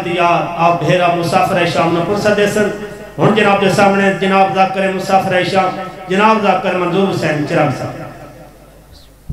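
A young man chants a lament loudly into a microphone, heard through loudspeakers.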